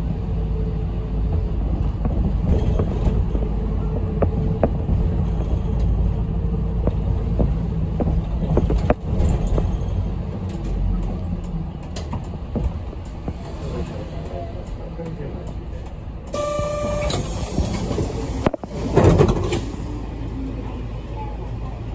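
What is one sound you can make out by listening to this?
A bus engine rumbles low and steady while driving.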